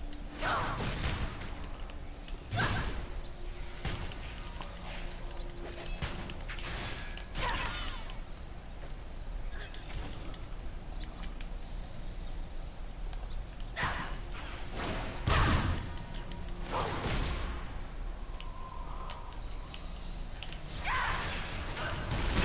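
Magic spells burst and crackle loudly in a game.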